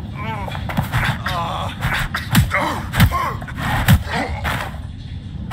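A man groans and cries out in pain.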